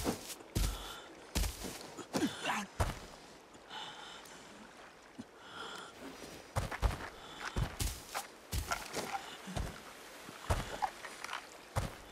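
Footsteps thud steadily on a hard surface.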